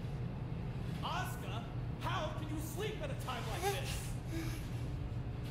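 A girl speaks.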